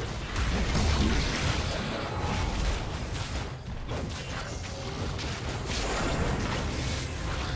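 Video game battle effects crackle and whoosh as fighters clash.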